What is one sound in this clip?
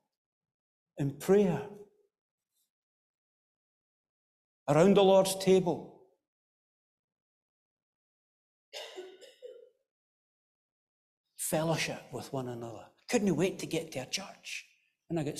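A middle-aged man speaks slowly and solemnly through a microphone, with pauses, in an echoing hall.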